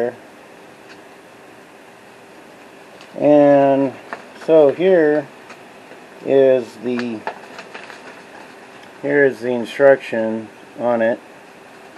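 Paper pages rustle as they are turned by hand.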